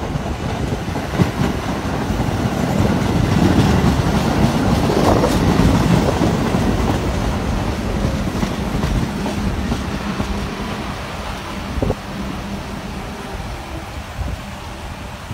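Steel wheels clatter over rail joints.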